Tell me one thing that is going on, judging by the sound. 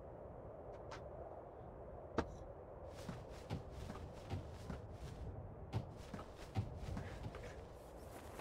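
Footsteps clank on metal ladder rungs during a climb.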